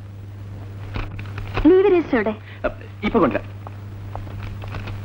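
Papers rustle as they are handled.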